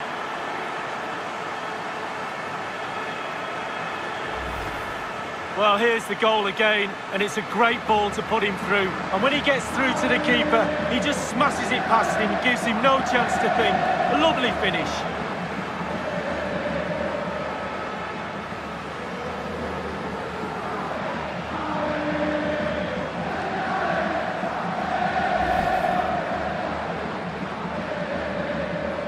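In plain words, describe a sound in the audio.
A large crowd roars and cheers throughout.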